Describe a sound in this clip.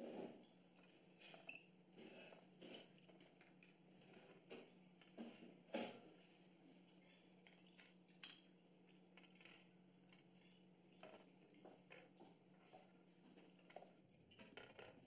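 Dishes and cutlery clink softly.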